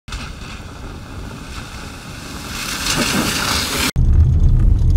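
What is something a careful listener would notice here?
A car drives through puddles, splashing water.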